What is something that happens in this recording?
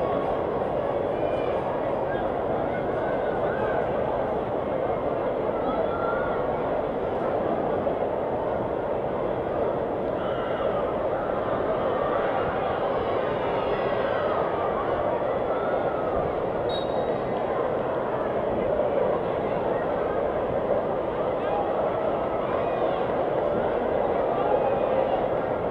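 A crowd of spectators chatters in a stadium.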